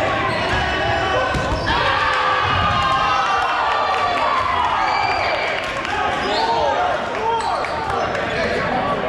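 Young people shout and call out in a large echoing hall.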